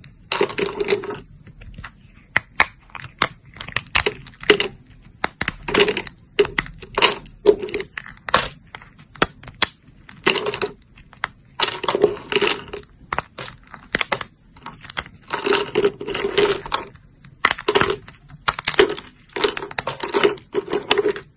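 Thin plates of dry soap snap and crunch between fingers.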